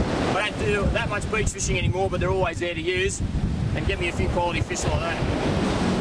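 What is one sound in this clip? A man speaks calmly and clearly outdoors.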